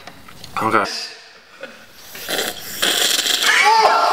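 A young man snorts loudly close by.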